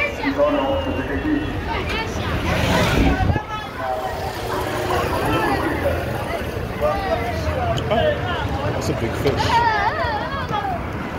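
Motor tricycle engines idle and rumble nearby.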